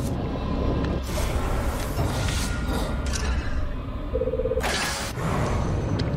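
A game menu clicks and chimes.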